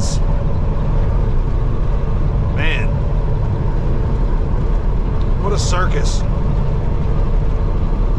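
A truck's diesel engine rumbles low and steady from inside the cab.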